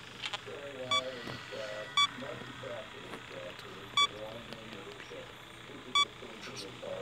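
Short electronic beeps sound at a steady pace.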